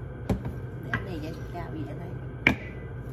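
A woman speaks calmly to a nearby listener.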